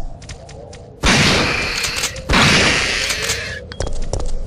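A handgun fires loud shots.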